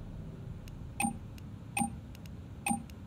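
Keypad buttons beep one at a time.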